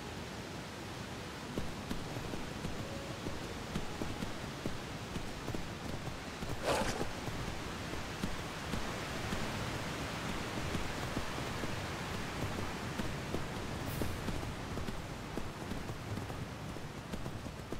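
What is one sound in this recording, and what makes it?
Horse hooves clop steadily on a dirt path.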